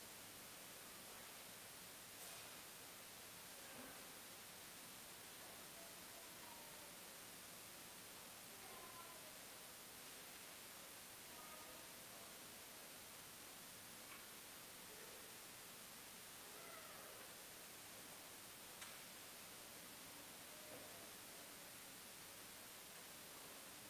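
A man speaks quietly and slowly, distant in a large echoing hall.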